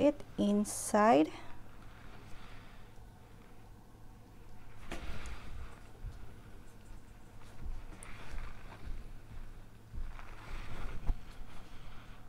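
A gloved finger drags softly through wet paint.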